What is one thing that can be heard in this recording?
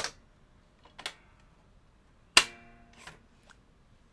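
A plastic part knocks and clunks into place inside a machine.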